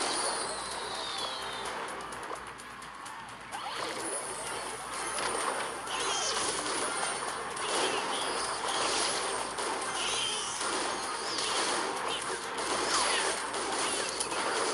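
Cartoonish game music plays with clashing battle sound effects.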